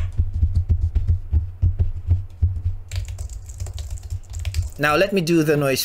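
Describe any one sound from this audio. Hands tap and thump rapidly on a desk close to a microphone.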